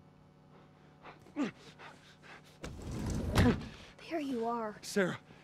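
A man speaks loudly and strains with effort nearby.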